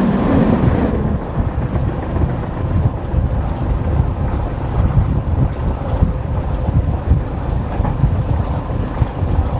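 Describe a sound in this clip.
Wind rushes loudly past an open train window.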